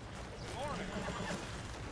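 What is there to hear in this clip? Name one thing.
A horse-drawn wagon rumbles by at a distance.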